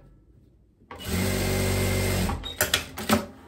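A sewing machine runs in a short fast burst.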